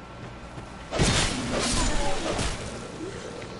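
A sword strikes with loud metallic clangs.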